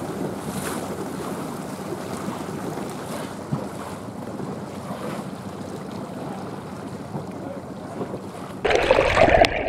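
Water laps gently outdoors.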